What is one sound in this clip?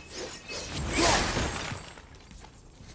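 A shower of metal coins scatters and jingles.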